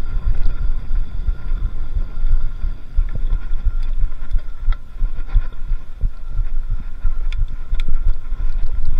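Bicycle tyres roll and bump over a dirt trail.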